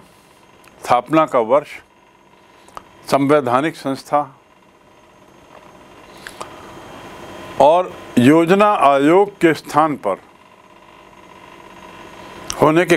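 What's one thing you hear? A middle-aged man speaks calmly and clearly into a close microphone, in short phrases with pauses.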